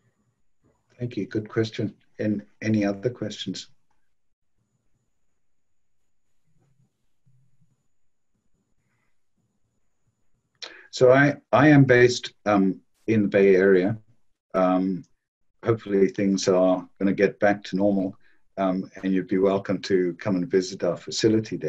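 A man speaks calmly through a microphone in an online call.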